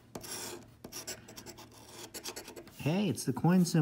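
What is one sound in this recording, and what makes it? A coin scrapes and scratches across a card close up.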